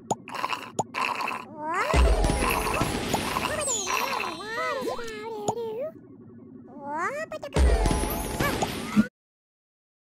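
Cartoon game creatures squeak and chatter in high voices.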